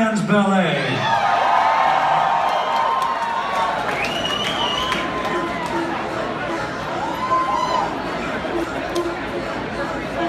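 A band plays music through loudspeakers.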